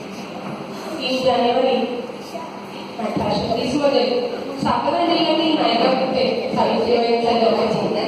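A man speaks loudly into a microphone, his voice filling an echoing hall.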